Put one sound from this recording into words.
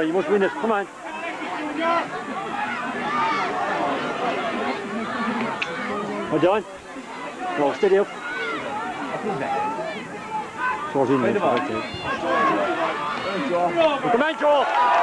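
A crowd of spectators shouts and calls out nearby.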